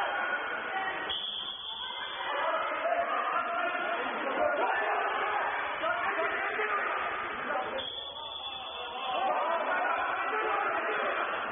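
Water splashes and churns as swimmers thrash about in a large echoing pool hall.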